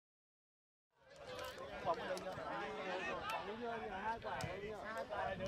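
Hands slap together in high fives.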